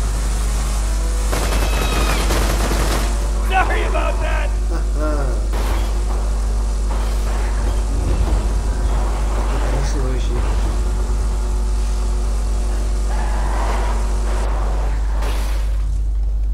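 A vehicle engine hums steadily as it drives over rough ground.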